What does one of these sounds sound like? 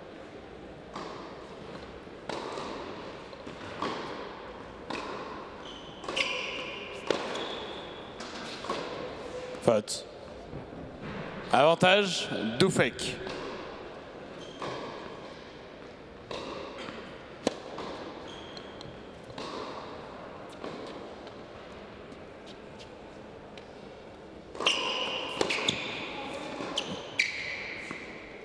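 A tennis ball bounces on a hard court at an even pace.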